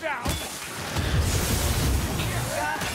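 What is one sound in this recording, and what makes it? A heavy shield swings and thuds.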